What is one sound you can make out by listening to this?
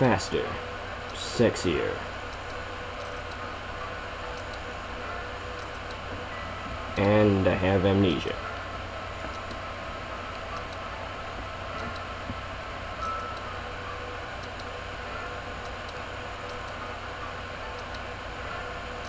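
Dialogue text blips in a handheld video game.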